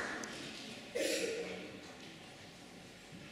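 A young girl speaks into a microphone over loudspeakers.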